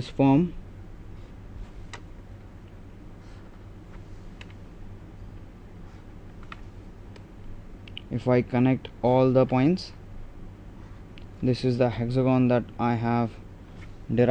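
A pen scratches softly across paper.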